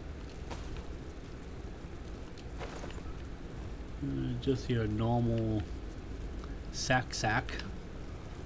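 Short soft clicks and rustles sound as items are picked up.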